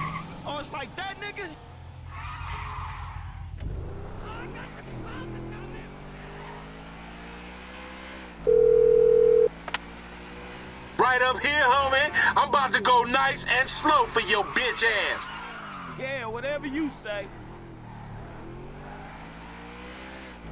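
A car engine hums and revs up and down as the car drives along.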